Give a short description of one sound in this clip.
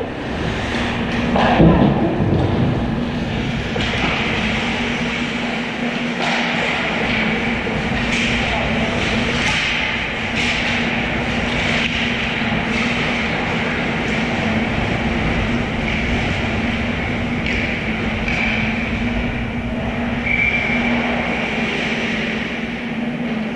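Skate blades scrape and hiss on ice in a large echoing rink.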